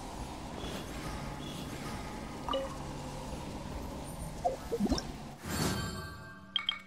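Fiery magic attacks whoosh and crackle.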